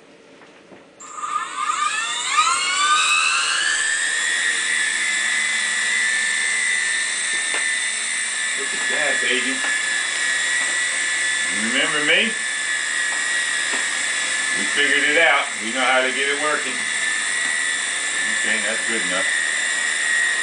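A toy helicopter's motor whines, rising in pitch as it spins up, then holds a steady high whine.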